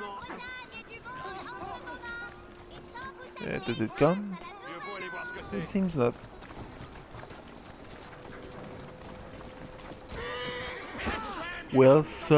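A horse-drawn carriage rolls by with clattering hooves.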